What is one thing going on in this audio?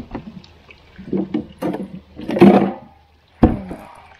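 A plastic cooler lid creaks open.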